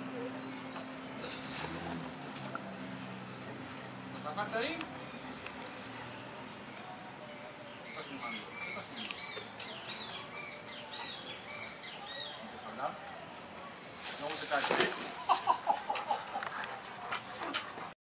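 Dogs trot and scuffle on grass outdoors.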